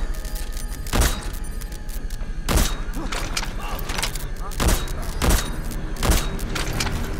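Rifle shots crack sharply, one at a time.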